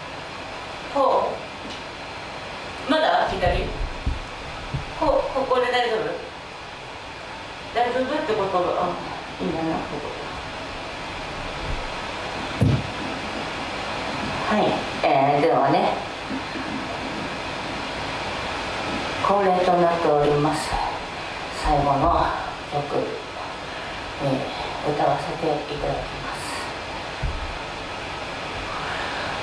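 A young woman sings in phrases into a microphone.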